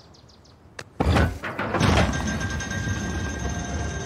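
A heavy stone rumbles and grinds as it moves.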